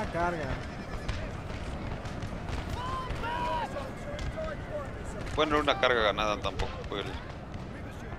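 Musket volleys crackle and pop across a battlefield.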